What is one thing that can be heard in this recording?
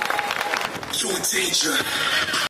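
A crowd of young people cheers and shouts.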